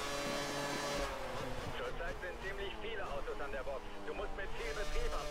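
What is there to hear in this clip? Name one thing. A racing car engine drops in pitch and burbles as the car brakes hard.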